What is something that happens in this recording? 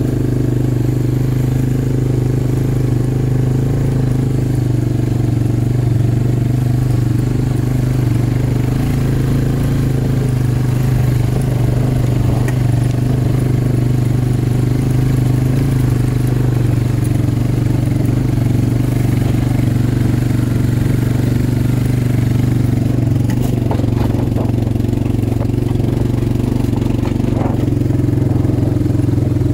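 An all-terrain vehicle engine drones steadily close by.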